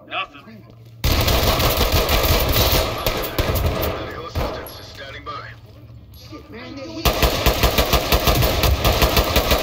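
Gunshots fire in rapid, loud bursts close by.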